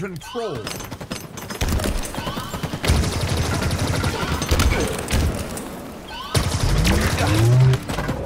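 Video game gunfire rattles in quick bursts.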